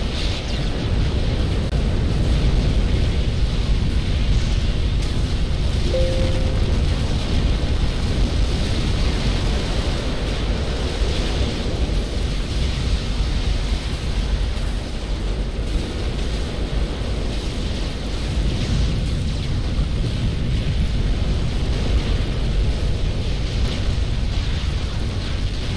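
Explosions and weapons fire rumble on and on in a large battle.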